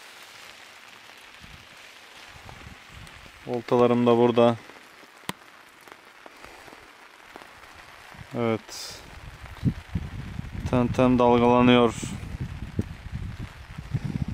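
Rain falls steadily on water outdoors.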